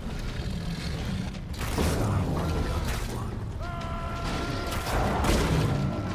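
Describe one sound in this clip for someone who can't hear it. A large big cat growls and snarls.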